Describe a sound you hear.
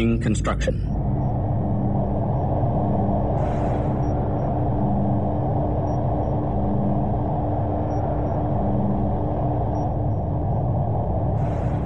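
Spaceship engines hum low and steady.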